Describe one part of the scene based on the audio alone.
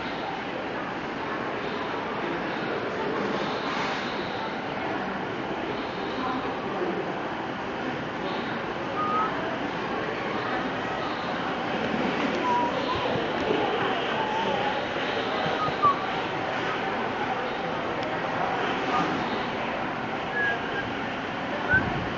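Men and women chatter steadily in the background of a busy room.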